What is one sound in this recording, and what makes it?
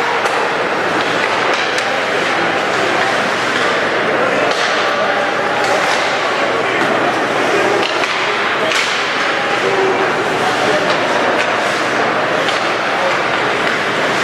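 A crowd murmurs and cheers steadily in a large echoing rink.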